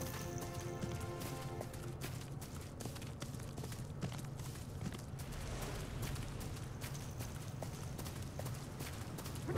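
A horse's hooves thud steadily along a dirt path.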